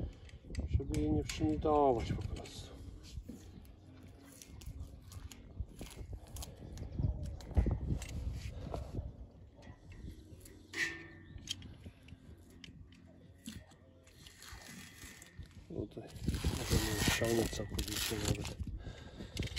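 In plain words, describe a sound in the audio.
Metal parts click and scrape.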